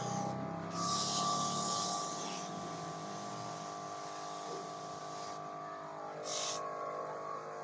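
A spray gun hisses in short bursts.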